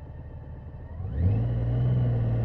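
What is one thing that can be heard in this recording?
A motorcycle engine revs up sharply as the bike pulls away.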